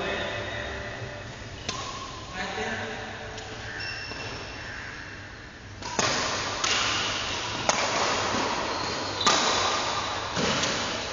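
Shoes squeak on a hard floor in a large echoing hall.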